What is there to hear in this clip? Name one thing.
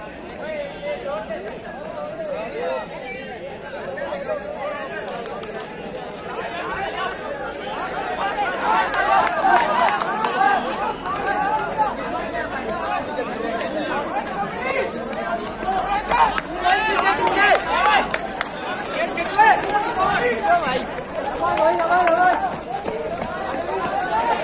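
A crowd of young men chatters and shouts outdoors.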